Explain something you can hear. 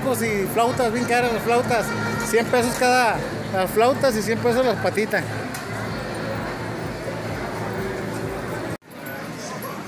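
A crowd of people chatters.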